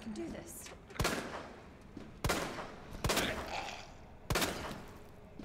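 A handgun fires several loud shots that echo.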